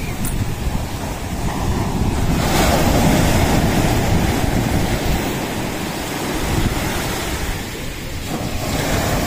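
Waves crash and wash over a shore close by.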